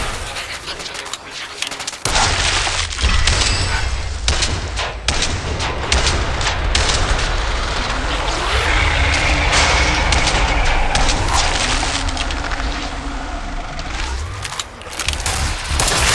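A gun's magazine clicks and clacks as it is reloaded.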